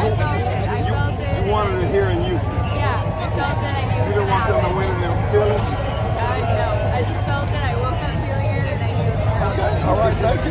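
A young woman speaks excitedly into a microphone close by.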